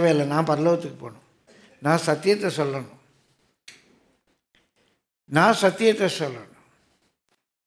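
An elderly man speaks slowly and solemnly through a microphone, with pauses.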